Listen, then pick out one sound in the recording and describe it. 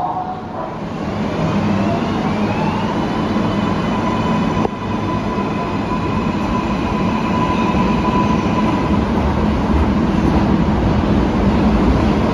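A subway train pulls away, rumbling louder and louder.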